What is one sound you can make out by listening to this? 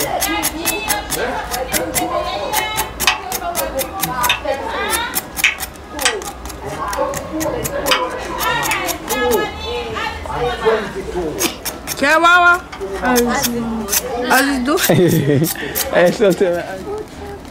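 A knife scrapes rapidly against the rough skin of a root.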